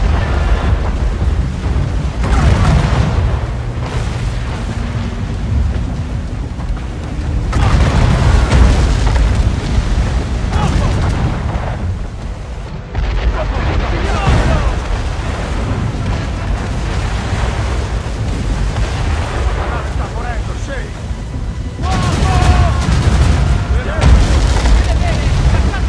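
Stormy wind and waves roar steadily.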